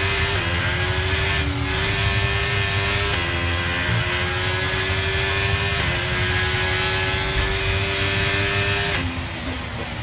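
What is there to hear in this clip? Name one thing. A racing car engine screams at high revs, stepping up sharply with each gear change.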